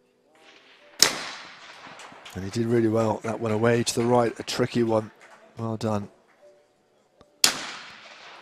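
A shotgun fires loudly outdoors, with the blast echoing away.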